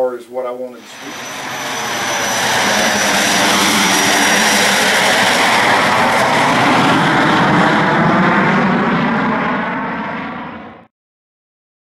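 A small plane's engine roars as it takes off.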